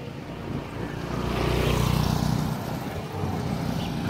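A small motorcycle passes close by.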